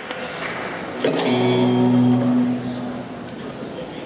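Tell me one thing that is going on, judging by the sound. An electric guitar strikes a loud chord that rings out through a large echoing hall.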